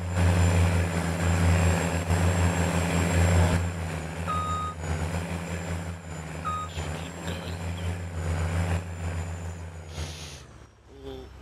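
A tractor engine rumbles steadily at low speed.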